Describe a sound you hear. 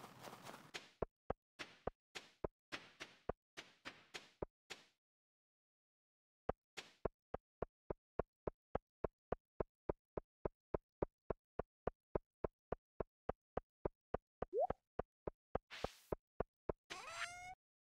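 Footsteps tap quickly on a hard path.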